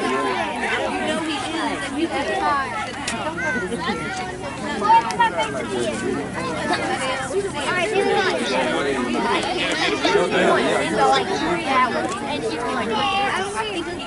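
A crowd of children and adults chatter and call out nearby outdoors.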